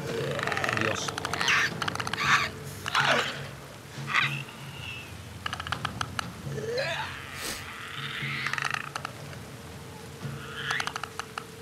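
A creature makes rapid rattling clicks.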